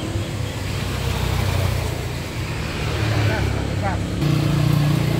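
A motorbike engine roars past on a road.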